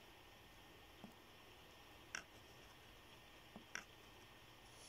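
A phone taps lightly against something nearby a few times.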